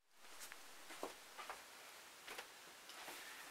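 Soft footsteps thud close by.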